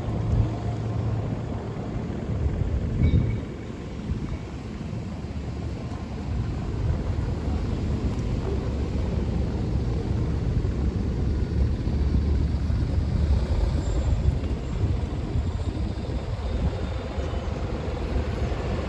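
City traffic rumbles steadily in the distance outdoors.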